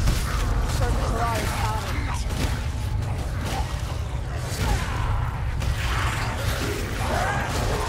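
Blades slash and thud into rat creatures in quick bursts.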